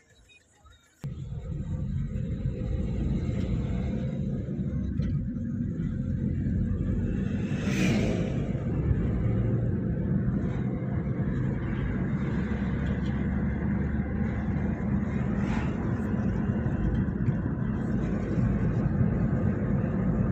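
A car rumbles steadily along a road, heard from inside.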